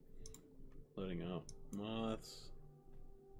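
A man exclaims briefly, close to a microphone.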